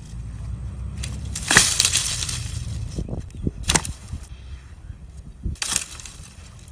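Twigs snap underfoot.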